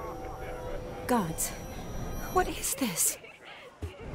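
A young woman speaks, startled.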